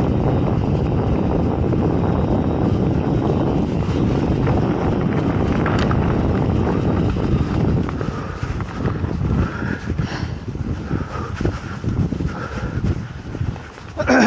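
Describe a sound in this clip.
Mountain bike tyres roll and crunch over a dirt trail.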